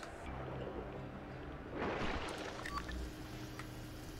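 A bright chime rings as an item is picked up.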